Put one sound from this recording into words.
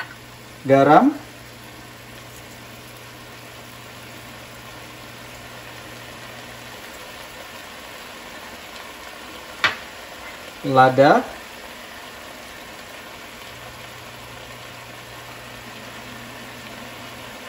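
Salt grains patter softly onto food in a pan.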